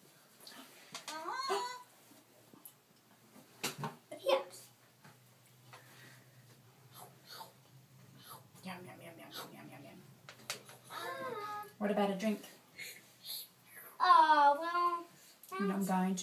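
A young child speaks in a high voice nearby.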